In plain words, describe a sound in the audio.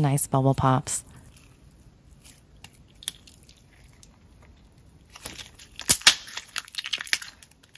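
Sticky slime squishes and crackles between fingers.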